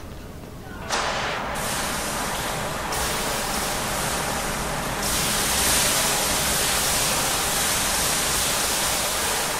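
A fire extinguisher sprays with a steady loud hiss.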